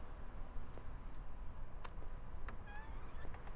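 A key rattles in a door lock.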